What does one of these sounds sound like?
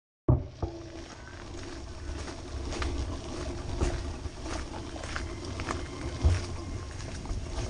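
Bicycle tyres roll over a bumpy path with rattling clicks.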